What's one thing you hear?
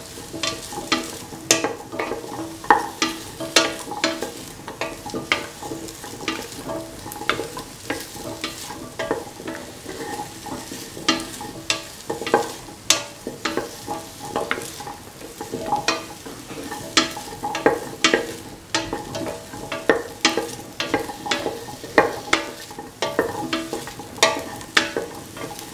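Vegetables sizzle and simmer in a pot.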